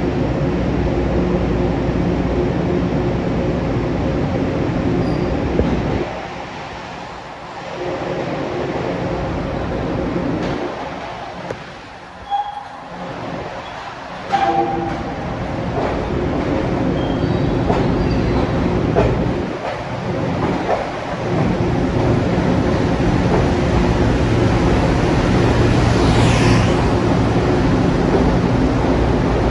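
A train rumbles into an echoing underground station, growing louder as it nears.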